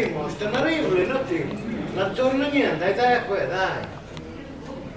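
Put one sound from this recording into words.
Two men talk close by, loud at first.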